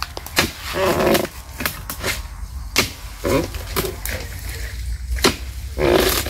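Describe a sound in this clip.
A long harvesting pole knocks sharply against a palm tree several times.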